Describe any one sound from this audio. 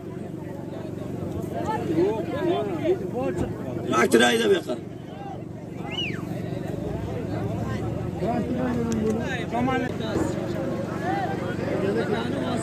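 A large outdoor crowd of men chatters and shouts nearby.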